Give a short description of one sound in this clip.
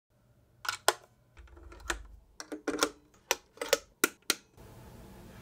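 A cable plug clicks and scrapes into a socket.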